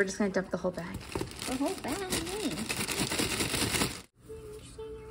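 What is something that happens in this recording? Marshmallows tumble softly into a metal pot.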